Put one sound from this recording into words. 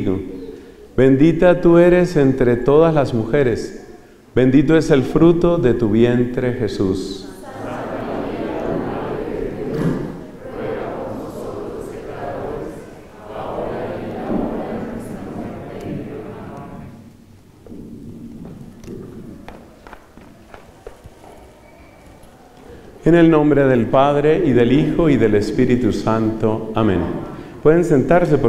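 A middle-aged man speaks calmly into a microphone, amplified through loudspeakers.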